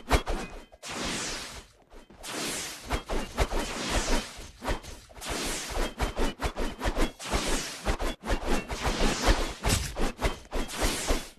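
A sword swooshes through the air again and again.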